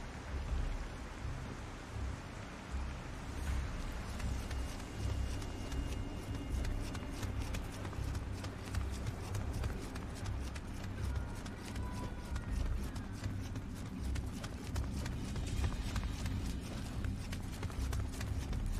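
Footsteps tread on stone in a dim, echoing space.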